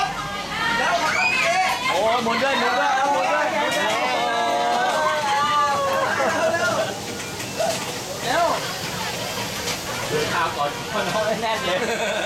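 Young children's high voices chatter and call out nearby.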